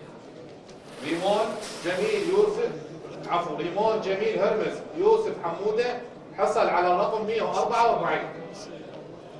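A man speaks clearly into a microphone, announcing in a large hall.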